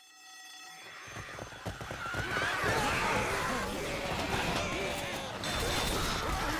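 Zombies snarl and shriek close by.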